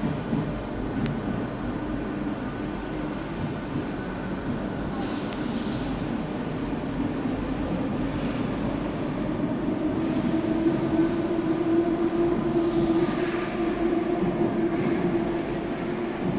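A train pulls away with a rising whine and rushing rumble.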